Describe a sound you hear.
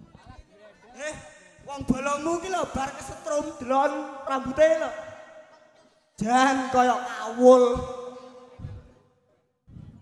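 Male dancers shout and chant loudly.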